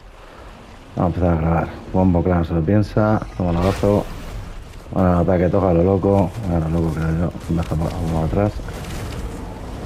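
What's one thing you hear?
Dinosaurs roar and growl loudly.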